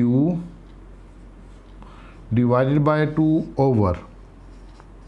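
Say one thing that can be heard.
A man speaks up close in drawn-out, slow phrases.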